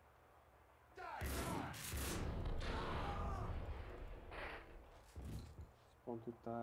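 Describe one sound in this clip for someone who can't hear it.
A shotgun fires loudly in an echoing room.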